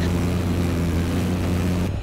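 A missile launches with a whoosh.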